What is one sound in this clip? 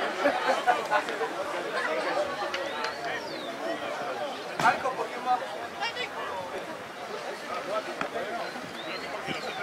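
A crowd of spectators chatters and calls out in the open air.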